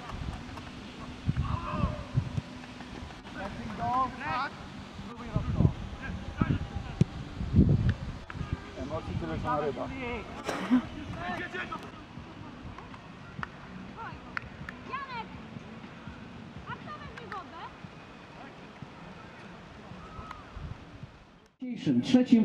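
Young men shout to each other outdoors across a playing field.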